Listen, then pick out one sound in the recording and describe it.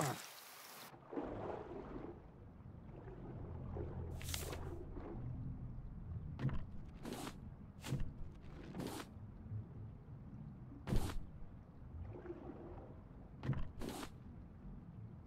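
Water rumbles and bubbles softly underwater.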